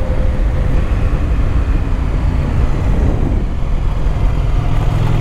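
Tyres roll and rumble over the road.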